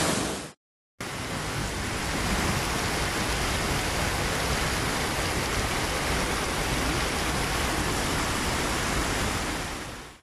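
A torrent of muddy water and earth rushes down a hillside.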